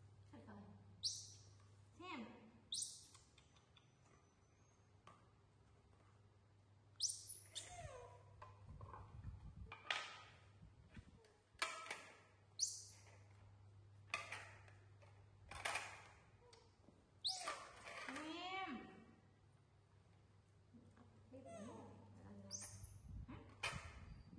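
Young monkeys squeak and chirp in high, sharp calls.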